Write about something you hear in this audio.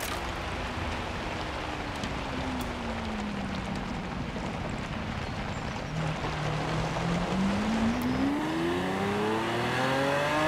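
A car engine hums low, then revs up as the car speeds up.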